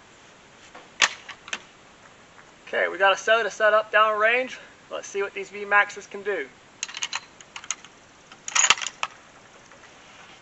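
Rifle parts click and clack.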